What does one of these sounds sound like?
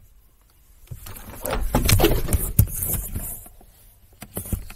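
A phone rustles and bumps loudly as it is moved about.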